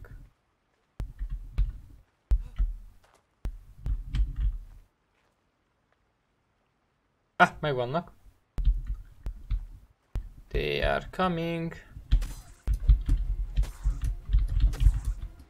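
Footsteps thud on soft ground.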